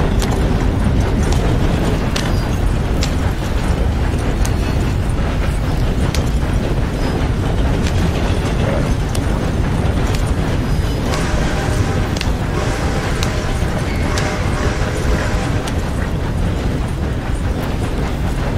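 A wooden cart rumbles and creaks along a dirt track.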